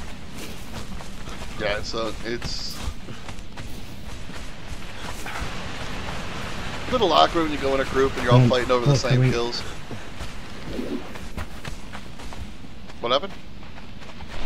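Footsteps crunch softly on sand and gravel.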